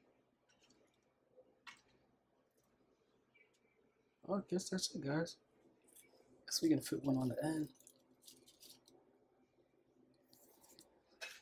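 Fried shrimp rustle softly as they are set down on a plate.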